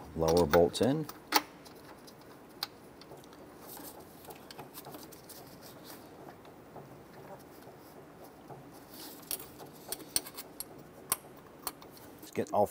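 A rubber hose creaks and knocks as it is pushed onto a fitting.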